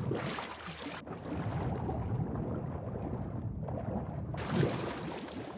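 Water sounds dull and muffled, as if heard from under the surface.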